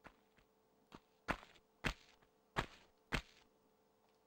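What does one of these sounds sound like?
Footsteps tap lightly on a hard floor.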